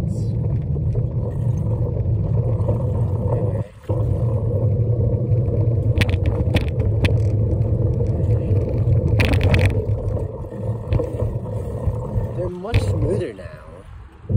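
Small wheels rumble steadily over rough pavement.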